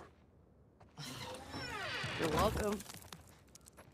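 A girl speaks with animation, close by.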